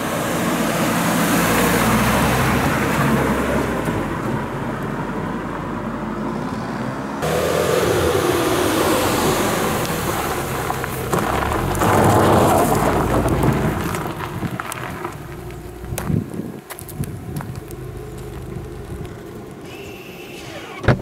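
A car engine hums as a car drives past on a road.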